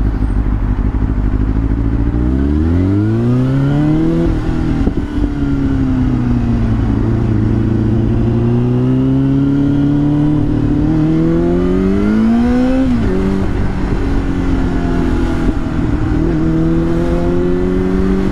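A motorcycle engine revs up and down through the gears.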